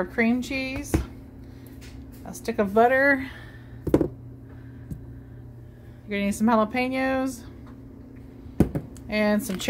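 Packages and cans knock lightly on a hard counter as they are handled.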